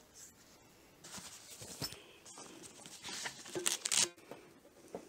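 A hand rustles and brushes against a padded fabric case.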